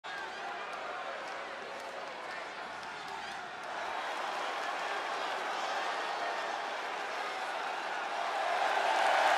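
A large crowd cheers and roars in a big echoing arena, growing louder.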